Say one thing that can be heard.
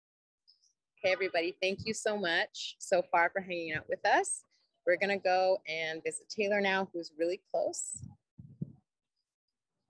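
A young woman speaks with animation close to a phone microphone, heard through an online call.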